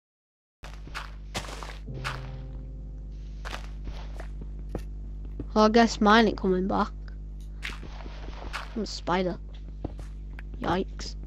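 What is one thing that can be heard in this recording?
Dirt and stone blocks crunch and knock as they are dug out.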